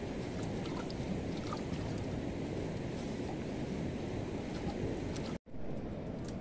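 Water sloshes in a metal basin.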